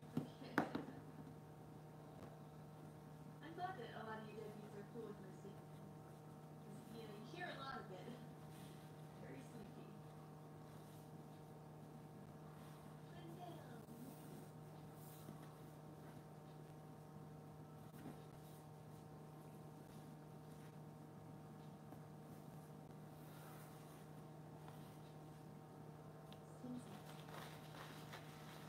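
Paper rustles softly.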